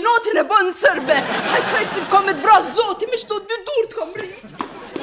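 A middle-aged woman shouts angrily up close.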